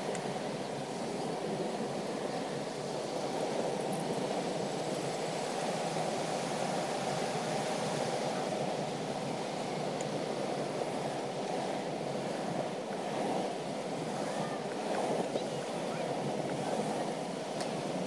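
Wind rushes past steadily outdoors.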